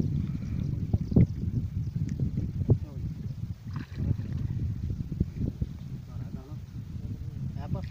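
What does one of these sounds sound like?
Water sloshes around legs wading in a shallow river.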